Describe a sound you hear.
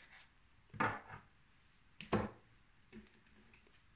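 Playing cards rustle and tap softly as they are handled.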